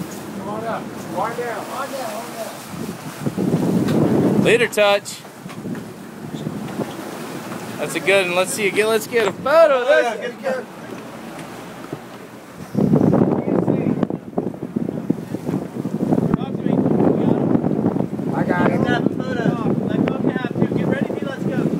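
Waves splash against a boat's hull.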